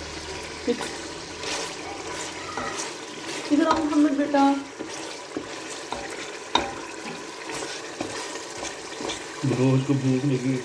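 A wooden spoon stirs and scrapes a thick stew in a metal pot.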